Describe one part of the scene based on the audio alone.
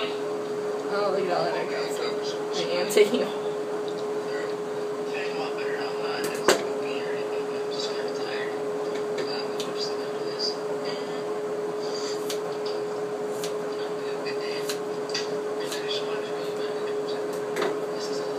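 Scissors snip through hair.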